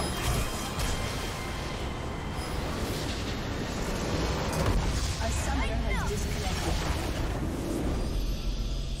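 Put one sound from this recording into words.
Game spell effects blast and crackle in a fierce battle.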